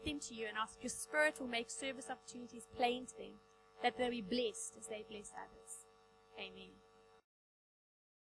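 A woman speaks calmly and clearly to an audience through a microphone.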